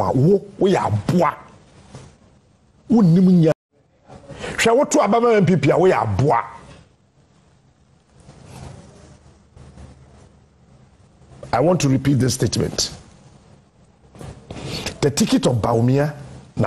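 A man speaks with animation through a microphone, in bursts with pauses.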